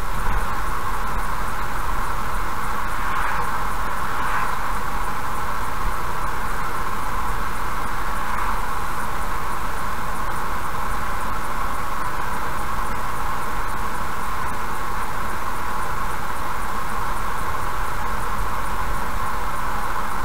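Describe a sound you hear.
A car drives steadily along a highway, its tyres humming on the road.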